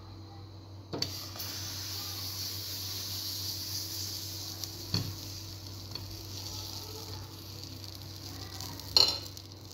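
Batter sizzles steadily in a hot pan.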